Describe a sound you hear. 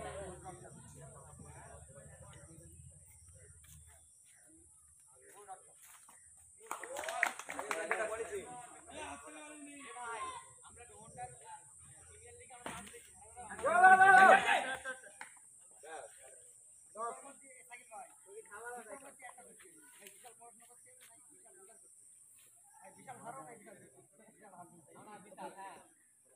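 Boys shout and call out to each other outdoors.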